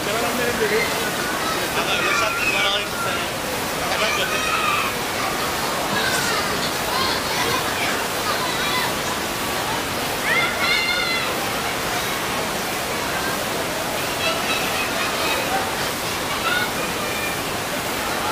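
A crowd of guests chatters in a large echoing hall.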